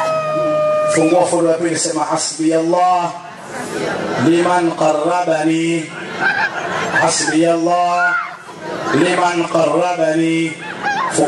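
A man speaks rhythmically through a loudspeaker.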